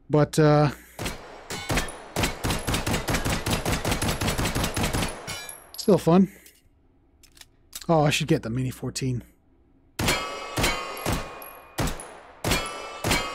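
A pistol fires rapid shots that ring out sharply.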